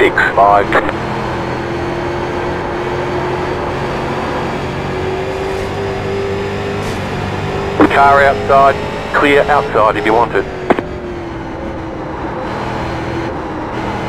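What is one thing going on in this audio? A racing car engine drones steadily at high speed.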